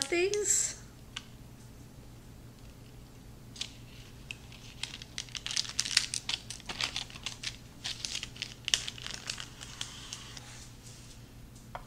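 A knife cuts through a brownie slab and scrapes on paper.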